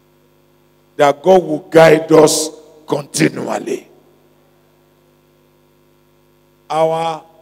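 A man preaches with animation through a microphone and loudspeakers.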